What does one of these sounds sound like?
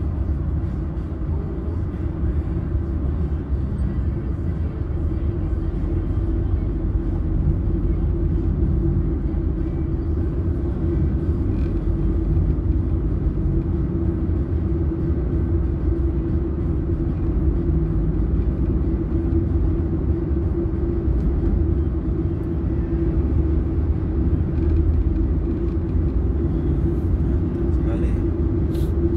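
A car engine hums steadily at speed inside a moving car.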